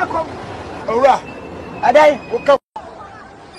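A man shouts close by.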